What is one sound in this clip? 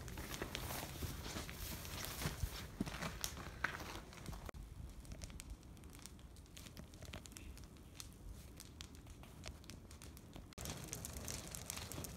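A fire roars and crackles, with sharp pops and snaps.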